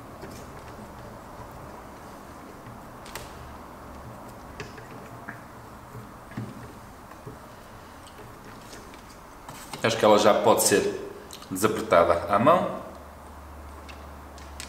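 A hex key scrapes and clicks softly against a metal bolt.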